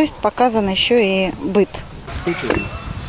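A middle-aged woman speaks calmly into a microphone, close by.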